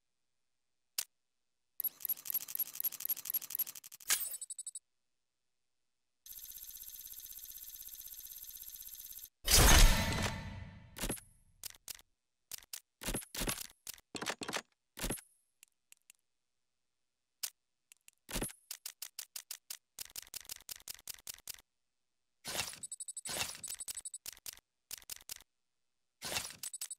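Short electronic menu clicks sound as a selection moves through a list.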